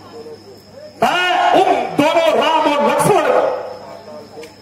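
A man sings loudly through a loudspeaker, with a booming echo.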